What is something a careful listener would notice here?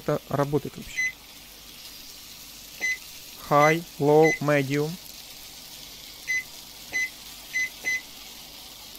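A microwave beeps as its buttons are pressed.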